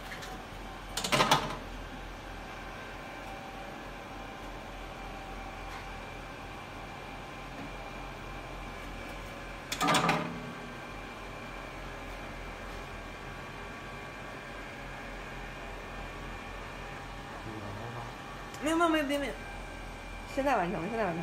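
A machine beeps several times.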